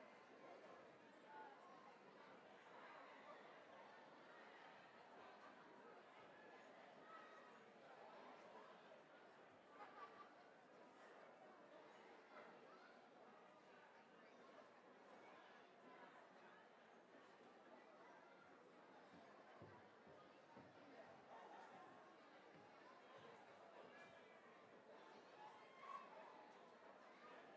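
Audience members clap and cheer now and then.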